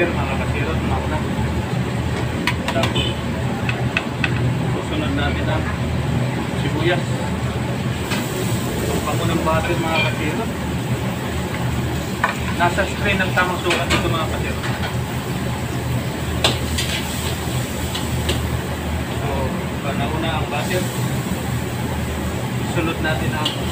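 A metal ladle scrapes and clinks against a wok.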